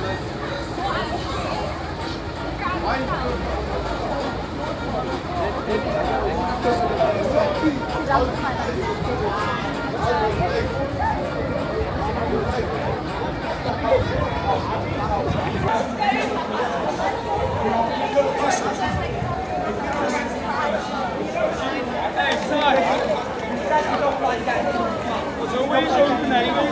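A crowd of young men and women chatter and call out outdoors.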